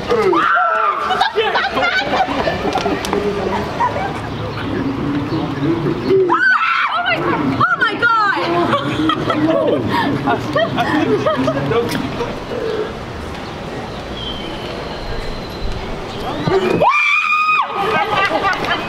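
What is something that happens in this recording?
A young woman shrieks in fright close by.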